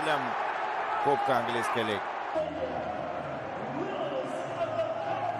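A crowd cheers loudly in a large stadium.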